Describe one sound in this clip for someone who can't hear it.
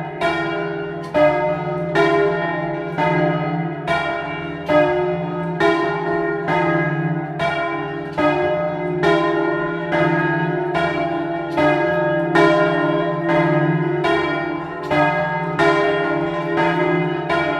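Bell clappers strike in a quick, uneven rhythm.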